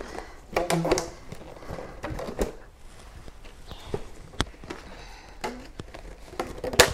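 Paper and cardboard rustle and crinkle in hands.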